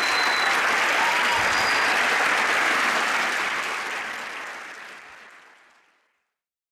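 A group of men cheer loudly, and the sound fades away.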